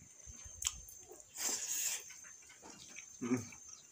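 A young man chews and smacks his lips close by.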